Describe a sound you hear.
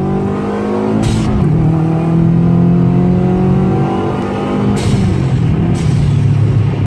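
A turbo hisses and whooshes between gear shifts.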